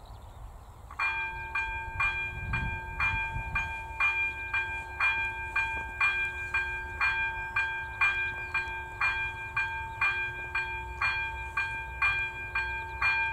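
A level crossing bell starts ringing in a fast, steady rhythm.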